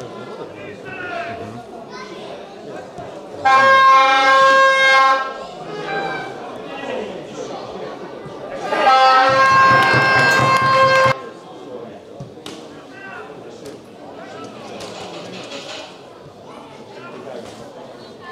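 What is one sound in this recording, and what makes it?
A football thuds off a boot.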